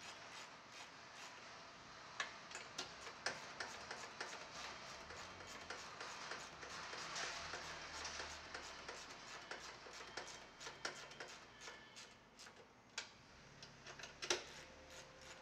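A ratchet wrench clicks rapidly as it tightens a bolt.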